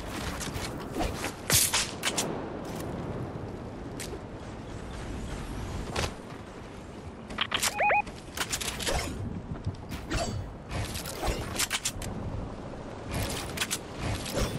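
Video game gunshots crack in quick bursts.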